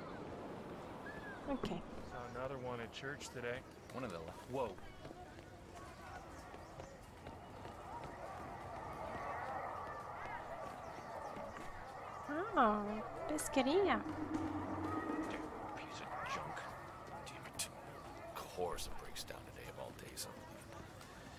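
Footsteps walk on cobblestones.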